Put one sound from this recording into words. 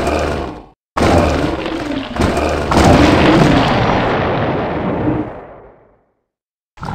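A fire spell bursts and roars.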